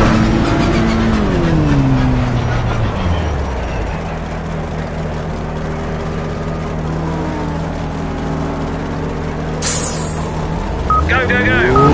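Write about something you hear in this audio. A GT3 race car engine slows down and settles to an idle.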